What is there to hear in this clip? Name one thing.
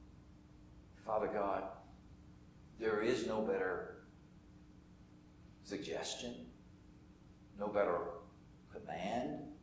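An elderly man speaks slowly and deliberately through a microphone in a large room, with pauses between phrases.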